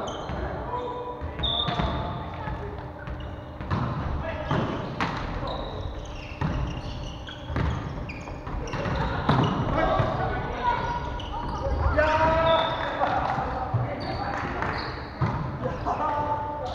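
Shoes squeak sharply on a wooden floor in a large echoing hall.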